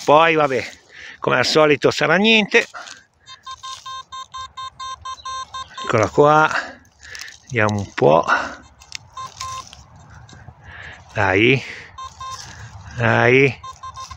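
A hand scrapes and rustles through loose soil and dry leaves.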